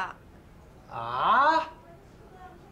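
A man cries out in surprise, his voice rising sharply, close by.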